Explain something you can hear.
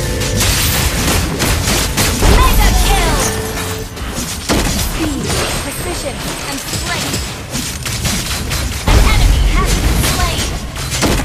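Game characters clash with blasts, slashes and magic spell effects.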